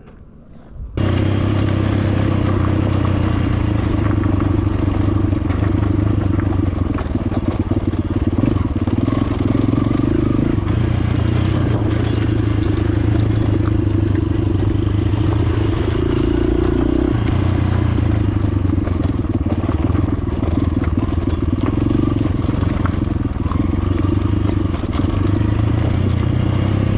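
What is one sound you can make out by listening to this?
A dirt bike engine labours as the bike climbs a dirt track.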